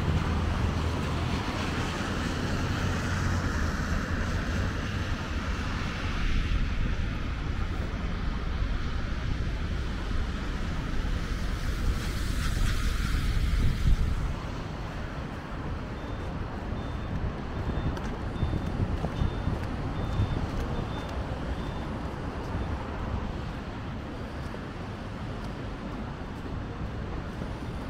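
Cars drive past on a wet road.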